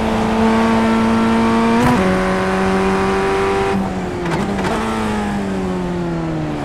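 A racing car engine whines at high revs, dropping in pitch with each gear shift.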